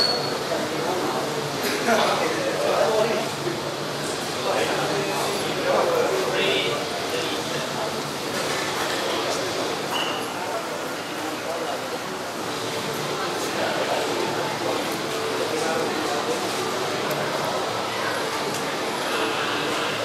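Men chatter and murmur nearby.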